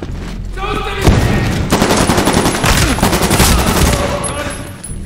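An assault rifle fires in rapid bursts.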